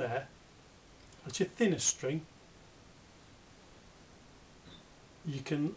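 A man explains calmly, close to the microphone, with pauses.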